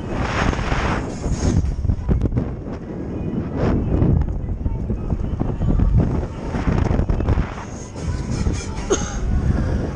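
Wind roars and buffets loudly as a fairground ride swings fast through the air.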